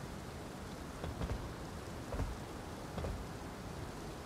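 Footsteps thud on a stone roof.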